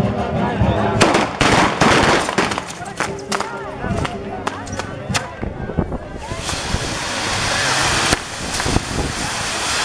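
Firecrackers pop and bang sharply.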